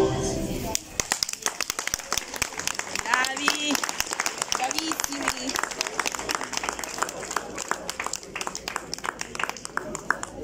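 A crowd claps hands steadily.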